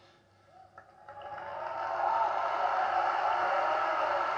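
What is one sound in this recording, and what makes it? A large crowd applauds and cheers in a big hall.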